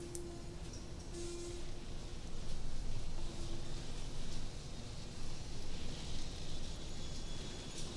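A pod door hisses open.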